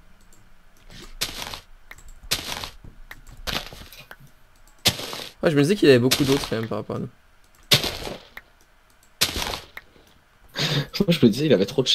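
Crops are broken with short, soft crunches, one after another.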